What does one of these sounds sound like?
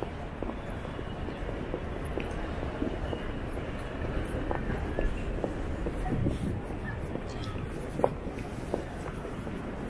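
Footsteps tap on the pavement nearby.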